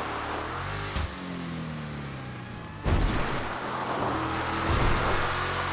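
An off-road buggy lands hard with a heavy thud.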